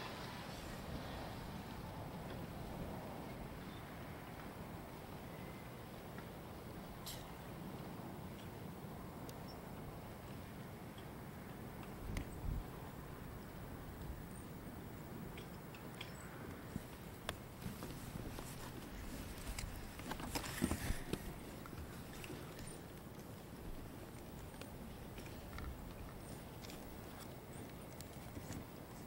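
Wind rumbles and buffets against the microphone outdoors.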